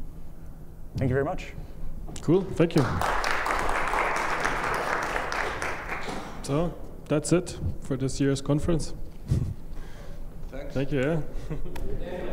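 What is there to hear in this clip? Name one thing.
A man speaks calmly through a microphone in a large hall.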